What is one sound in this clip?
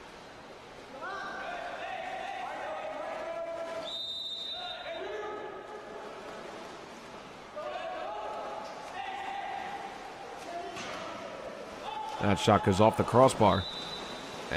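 Young men shout to each other across an echoing pool.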